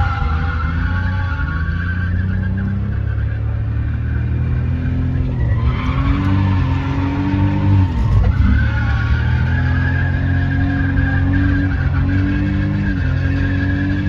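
A car engine revs hard, rising and falling as the car speeds through turns.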